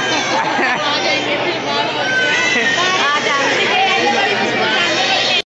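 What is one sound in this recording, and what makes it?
A crowd of people chatter loudly close by.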